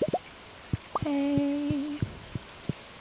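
A cartoon cow moos.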